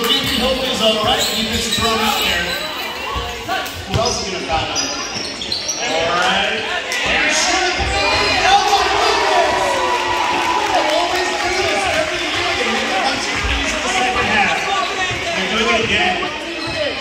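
Men and women call out to each other across a large echoing hall.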